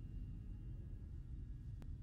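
Heavy boots step slowly on a hard floor.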